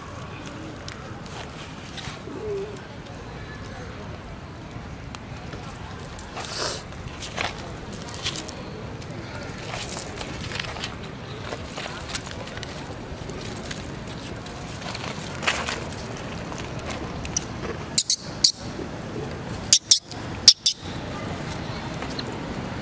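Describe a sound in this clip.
Monkeys squeak and chatter close by.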